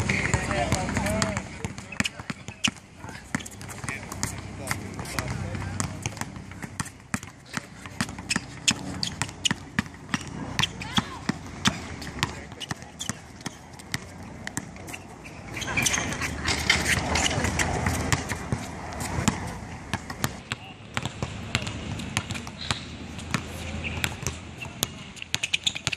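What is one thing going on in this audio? A basketball bounces rapidly on an outdoor court.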